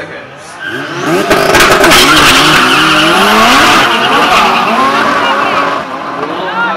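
A race car engine roars loudly as the car launches and speeds away.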